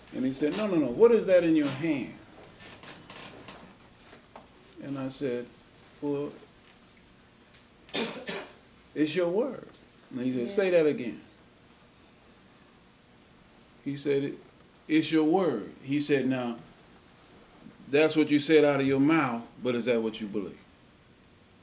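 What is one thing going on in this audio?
An elderly man preaches slowly through a microphone, with long pauses.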